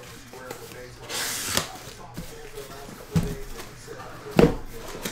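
Cardboard flaps rustle as a box is opened.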